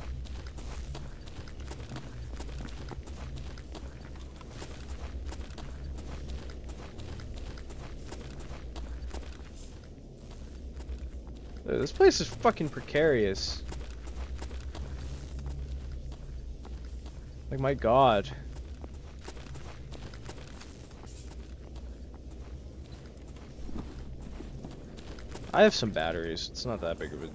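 Footsteps crunch steadily over debris on a hard floor.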